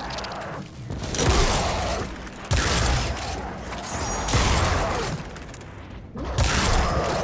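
Gunfire crackles in loud, rapid bursts.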